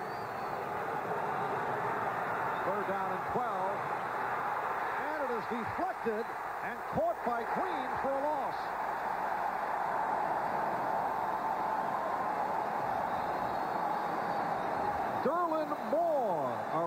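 A large crowd roars and cheers loudly in a stadium.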